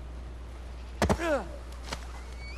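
A seagull cries overhead.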